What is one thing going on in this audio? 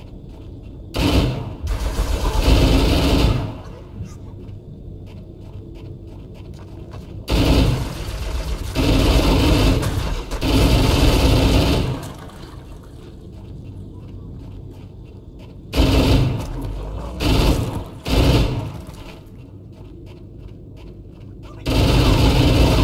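An automatic rifle fires loud rapid bursts.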